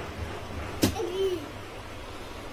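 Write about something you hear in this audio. A toddler makes a short babbling sound close by.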